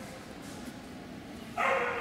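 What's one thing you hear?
Footsteps echo in a large, hard-walled hall.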